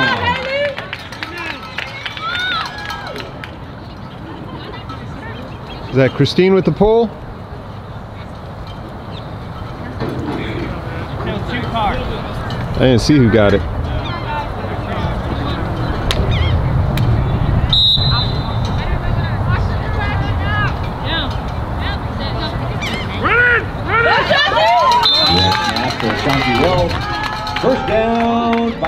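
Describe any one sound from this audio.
Girls shout and cheer nearby outdoors.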